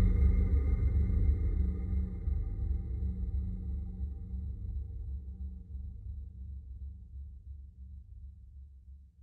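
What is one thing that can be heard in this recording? A boat motor hums steadily and slowly fades.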